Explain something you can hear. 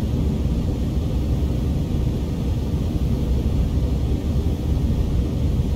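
Jet engines drone with a steady low rumble.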